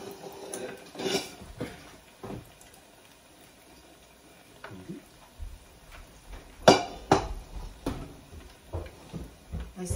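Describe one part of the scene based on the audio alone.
Metal pots and dishes clink and clatter.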